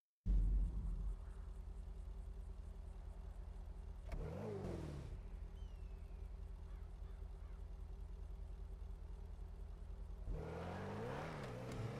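A car engine idles with a low, pulsing rumble.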